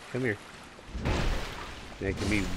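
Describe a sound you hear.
A heavy blow lands with a loud splash.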